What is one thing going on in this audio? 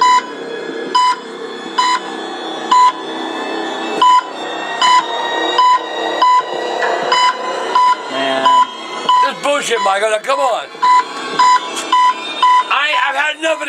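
A heart monitor beeps steadily from a speaker.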